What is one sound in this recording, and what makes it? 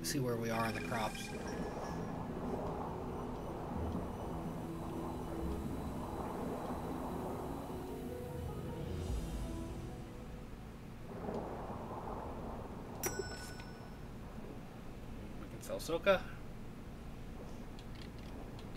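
Soft game music plays.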